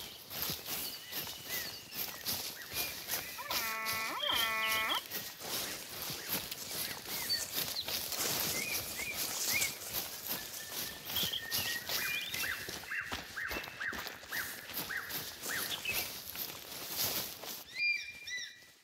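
Footsteps rustle through dry leaves and undergrowth.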